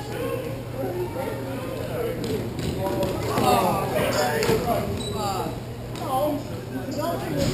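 Skate wheels roll and scrape across a hard floor in a large echoing hall.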